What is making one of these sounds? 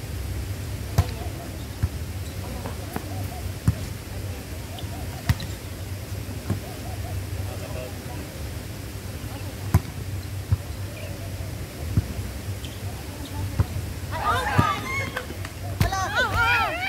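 A volleyball is struck with sharp thumps outdoors.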